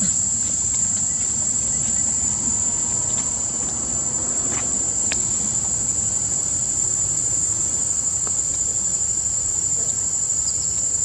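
Dry leaves rustle as monkeys scuffle on the ground.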